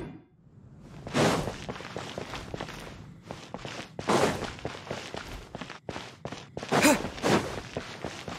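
Quick footsteps patter on stone steps and paving.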